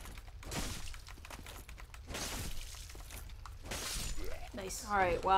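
A sword strikes armour with metallic clangs.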